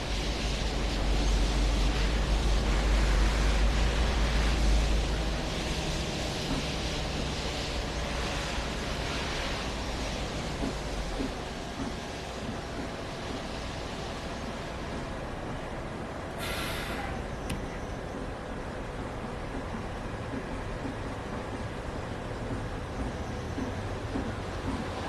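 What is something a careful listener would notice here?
Tyres roll on a wet road.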